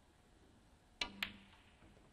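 A snooker cue strikes the cue ball with a sharp tap.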